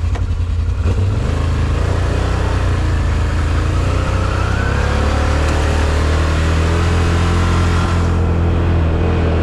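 An ATV engine revs up as the vehicle drives off over a dirt trail.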